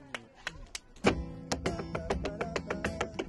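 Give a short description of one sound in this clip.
An acoustic guitar is strummed briskly.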